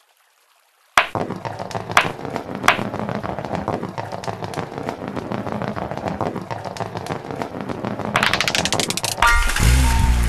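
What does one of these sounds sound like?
Marbles rattle as they roll down a winding track.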